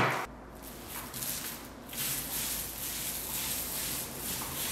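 A paint roller rolls across a wall with a soft, sticky swish.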